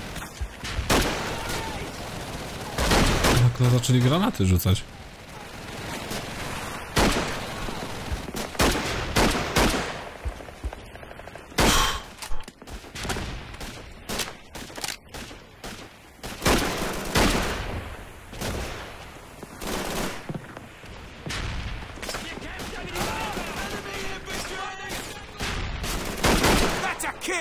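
Rifle shots ring out.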